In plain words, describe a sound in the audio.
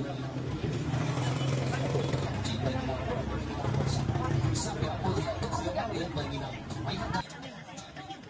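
A motorbike engine hums as it rides past slowly.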